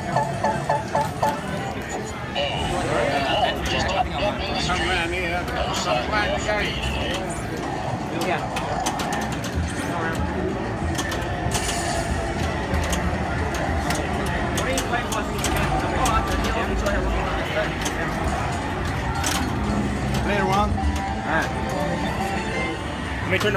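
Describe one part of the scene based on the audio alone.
A crowd of people chatter in a busy room.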